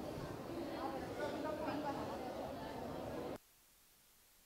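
Women chatter and talk with animation close by.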